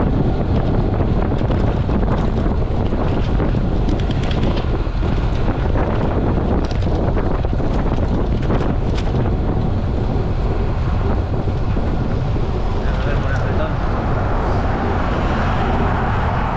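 Tyres hum on asphalt.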